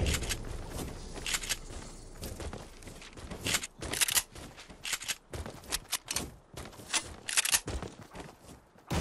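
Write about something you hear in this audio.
Quick footsteps patter on grass.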